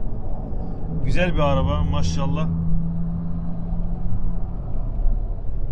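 A sports car's engine roars as it passes close by.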